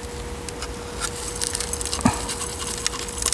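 Gritty soil trickles and rattles out of a plastic scoop.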